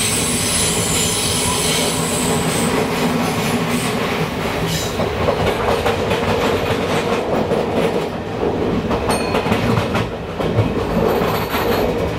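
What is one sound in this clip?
A passing train roars by close alongside.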